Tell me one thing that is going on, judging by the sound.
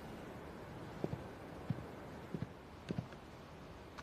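Footsteps tap across a floor.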